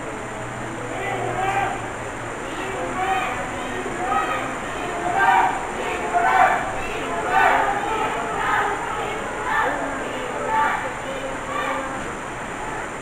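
People in a crowd shout and cheer in rhythmic bursts.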